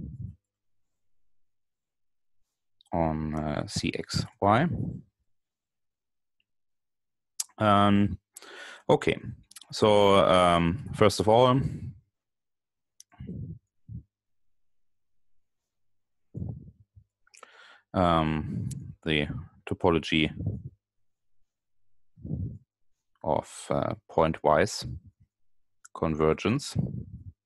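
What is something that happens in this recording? A man speaks calmly in pauses over an online call.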